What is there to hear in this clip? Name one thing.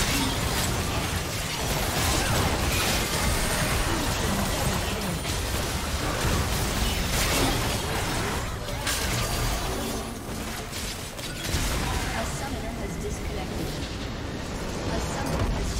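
Game battle sounds of spells and impacts clash rapidly.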